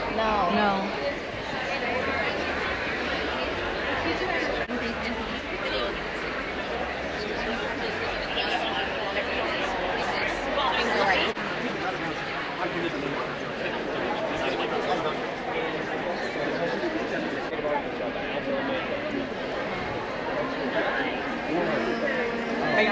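A crowd of men and women chatters all around in a large, echoing hall.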